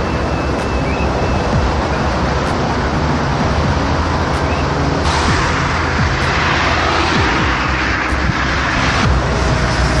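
A car engine hums steadily from inside the moving vehicle.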